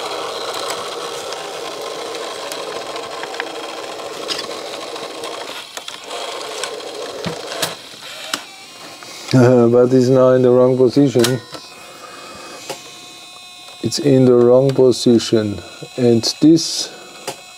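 Small plastic and metal parts click as a tape deck mechanism is handled.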